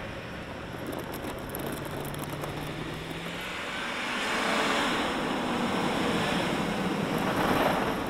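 Tires crunch through deep snow.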